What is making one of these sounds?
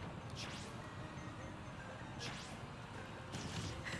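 Game fighting sounds whoosh and thump.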